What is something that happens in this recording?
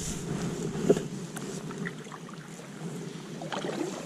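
A paddle splashes in water.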